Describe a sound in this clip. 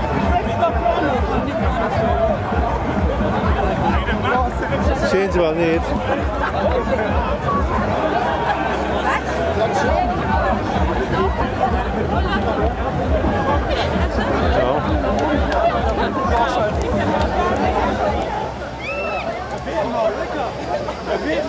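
A large crowd of men and women chatters and calls out nearby, outdoors.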